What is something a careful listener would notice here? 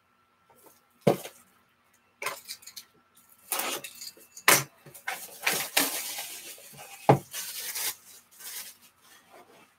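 Hands handle a plastic-wrapped box with crinkling and rustling.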